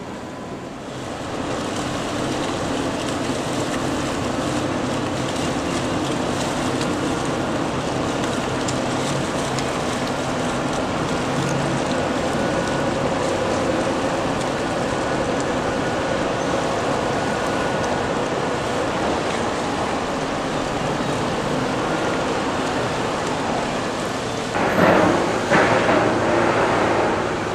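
A ferry's engine rumbles steadily as the boat draws close.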